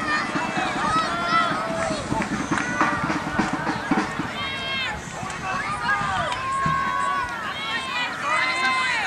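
A crowd of spectators chatters and calls out outdoors.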